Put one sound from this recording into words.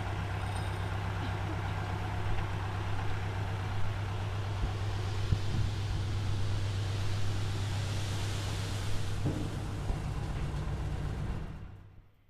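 Sand and gravel pour and hiss out of a tipping trailer.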